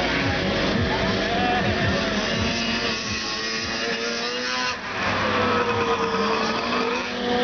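Motorcycle engines rev loudly, rising and falling in pitch.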